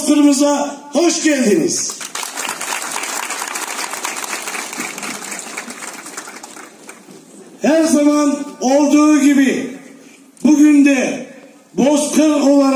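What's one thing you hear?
A man chants loudly through a microphone and loudspeaker outdoors.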